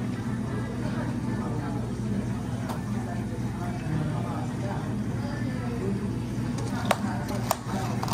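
A coffee machine hums steadily.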